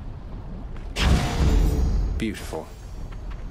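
A magical whoosh bursts out loudly and fades.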